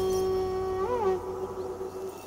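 A short musical chime rings out and fades.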